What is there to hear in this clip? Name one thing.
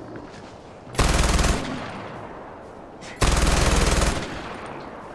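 Loud gunshots boom twice in quick succession.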